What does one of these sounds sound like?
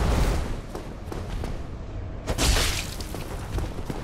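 Weapons clash and strike loudly.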